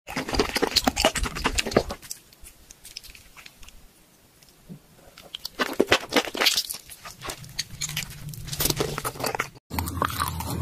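A woman slurps and chews soft, wet food close up.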